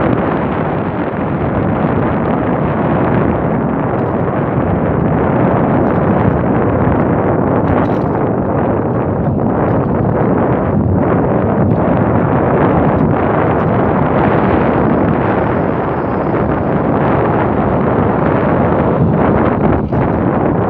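Wind rushes loudly past a bicycle rider outdoors.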